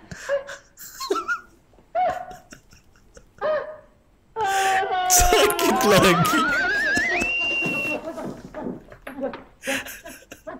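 A man laughs loudly and heartily close to a microphone.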